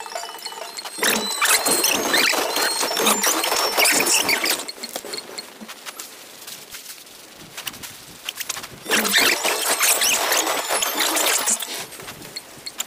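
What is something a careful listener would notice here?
Blades clash and magic bursts crackle in a fast game battle.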